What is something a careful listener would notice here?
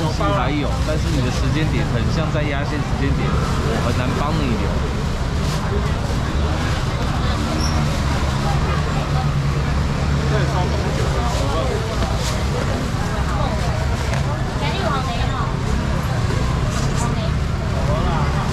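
Shellfish clatter into a plastic basket.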